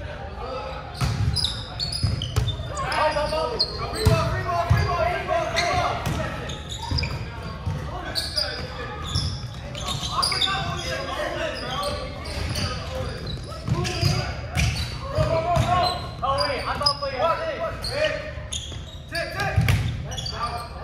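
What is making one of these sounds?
A volleyball is hit with sharp slaps that echo in a large hall.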